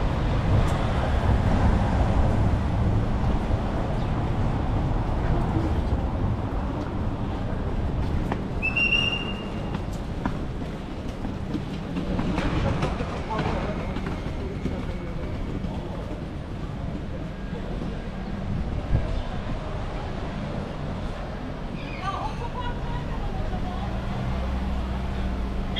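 City traffic hums steadily outdoors on a busy street.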